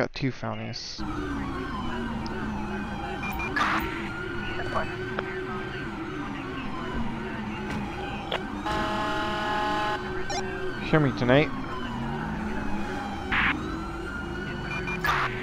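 A police siren wails close by, rising and falling.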